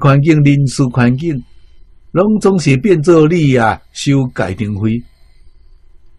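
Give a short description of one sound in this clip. An elderly man speaks calmly and closely into a microphone.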